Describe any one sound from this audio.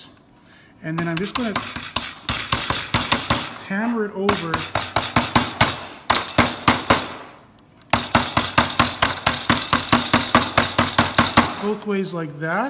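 A hammer taps rapidly on metal.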